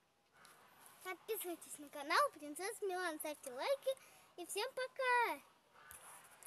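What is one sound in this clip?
A young girl speaks close by in a high, lively voice.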